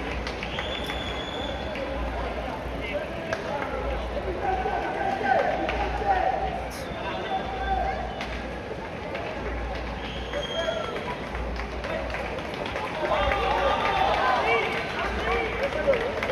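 Many runners' footsteps patter on the street.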